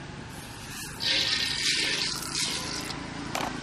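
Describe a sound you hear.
Small seeds pour and patter into an empty metal pan.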